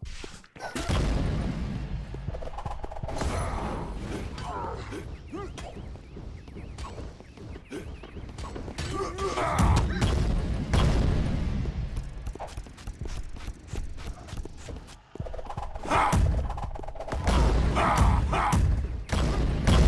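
Small fighters clash and strike with quick hits.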